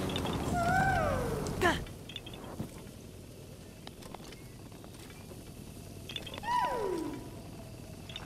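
A man exclaims close to a microphone.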